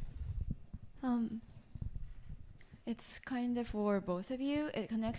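A young woman speaks softly into a microphone.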